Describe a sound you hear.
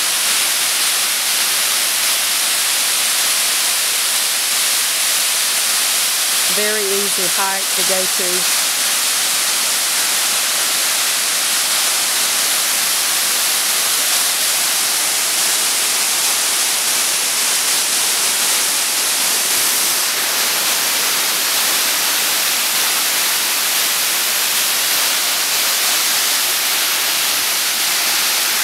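Water pours down a spillway with a steady, loud rush.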